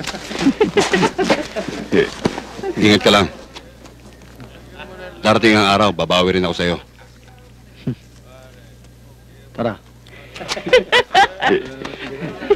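A man speaks firmly to a group nearby.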